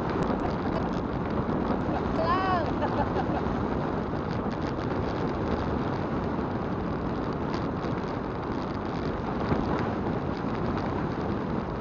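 Wind rumbles against a moving vehicle outdoors.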